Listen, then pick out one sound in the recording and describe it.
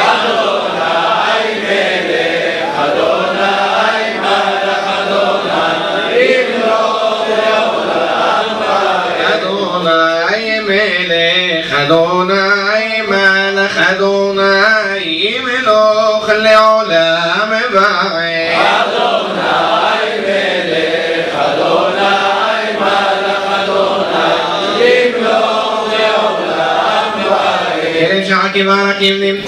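A man chants a prayer into a microphone in a large echoing hall.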